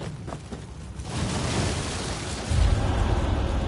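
A burst of smoke whooshes out.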